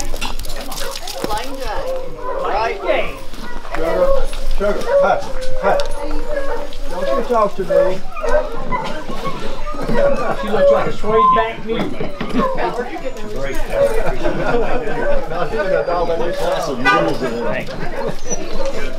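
Several men talk with one another nearby, outdoors.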